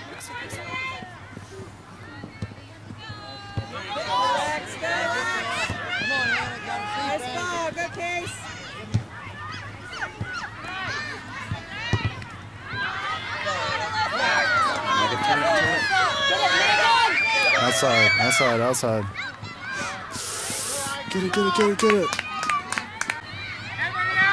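Young girls and adults shout and cheer outdoors.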